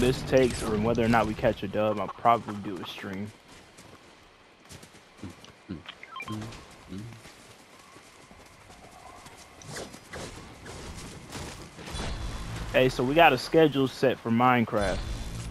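Footsteps run over grass and dirt.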